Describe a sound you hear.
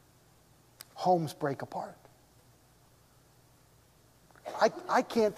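A middle-aged man speaks calmly through a microphone, with pauses between phrases.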